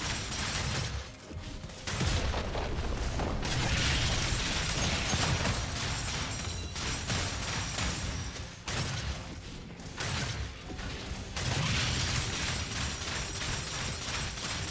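Video game combat sounds of clashing blows and crackling spells ring out.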